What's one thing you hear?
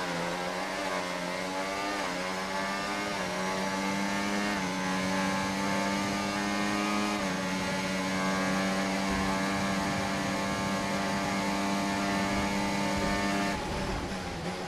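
A racing car engine screams at high revs, shifting up through the gears.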